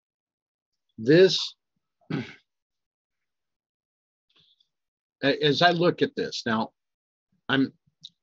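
An older man speaks calmly into a close microphone, in short bursts.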